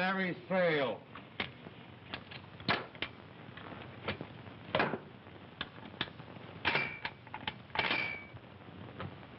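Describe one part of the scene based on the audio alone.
A man works the mechanism of a machine gun with sharp metal clicks.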